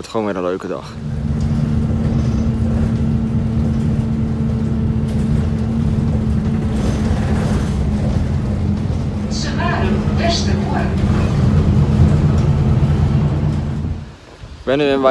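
A bus engine drones steadily from inside.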